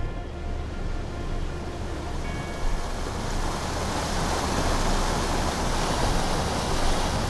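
A boat's engine hums low and steadily.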